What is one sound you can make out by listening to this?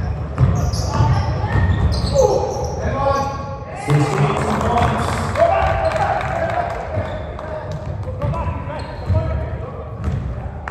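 Sneakers squeak sharply on a floor in a large echoing hall.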